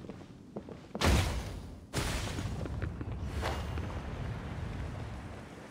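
A blade swishes sharply through the air.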